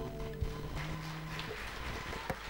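An acoustic guitar plays a final chord that rings out.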